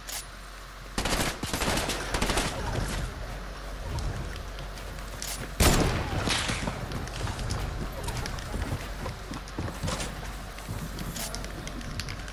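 Building pieces clatter and thud into place in a video game.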